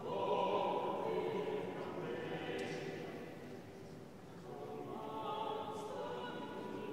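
A congregation sings slowly in a large echoing hall.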